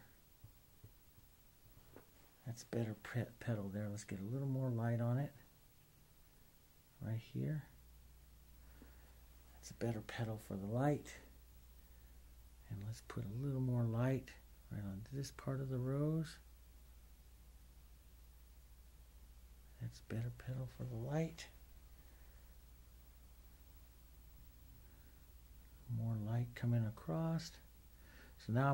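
A paintbrush softly brushes across a canvas.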